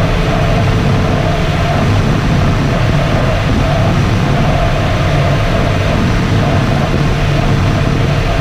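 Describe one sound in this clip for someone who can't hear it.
Air rushes loudly and steadily past a glider's cockpit in flight.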